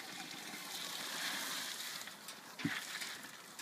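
Water splashes and hisses as it is poured over a fire.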